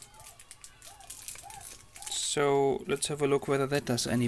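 Paper rustles and crinkles in someone's hands.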